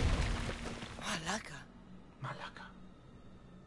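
A woman mutters quietly.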